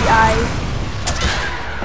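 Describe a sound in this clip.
Jet boots roar with a rushing blast.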